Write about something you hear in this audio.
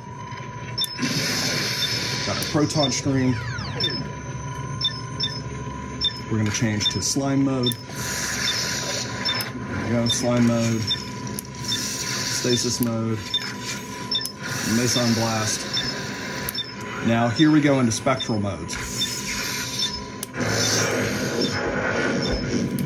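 A prop blaster's loudspeaker blasts bursts of crackling, warbling sound effects, again and again.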